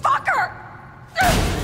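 A young woman shouts angrily.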